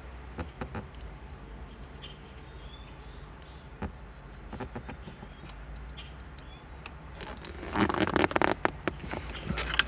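Pliers click as they squeeze wire connectors.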